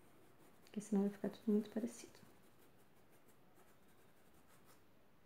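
A paintbrush softly strokes across paper.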